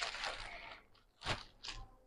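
Silk fabric rustles as it is handled.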